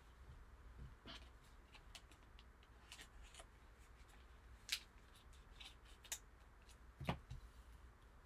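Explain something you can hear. Hard plastic card cases click and tap as they are handled.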